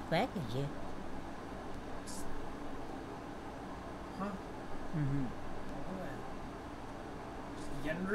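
An elderly woman speaks quietly in short, halting phrases close by.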